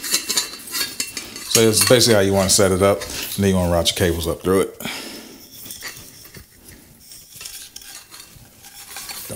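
Small metal parts click and rattle under fiddling hands.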